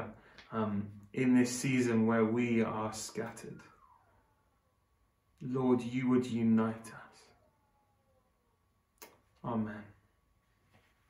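A man speaks calmly and slowly into a close microphone, with pauses.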